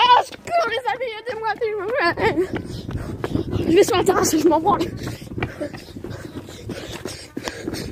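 A young man shouts and screams loudly close by.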